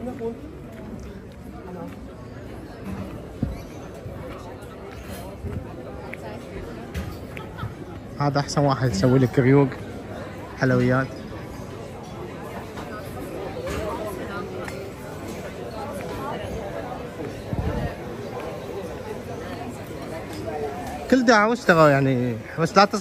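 A crowd of people chatter at outdoor tables.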